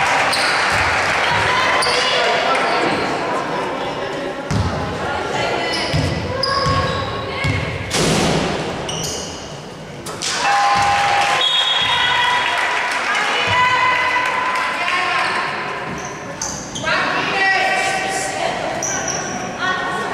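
Basketball shoes squeak on a wooden court in an echoing hall.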